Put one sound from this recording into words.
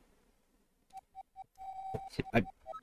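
Short beeping game tones chime several times.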